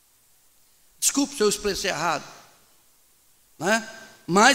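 A middle-aged man speaks with animation into a microphone, heard through a loudspeaker in an echoing room.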